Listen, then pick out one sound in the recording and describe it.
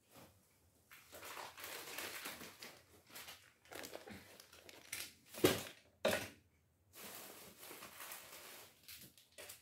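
Things rustle and clatter as a woman rummages nearby.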